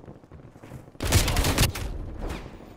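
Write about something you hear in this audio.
A rifle fires a loud, short burst.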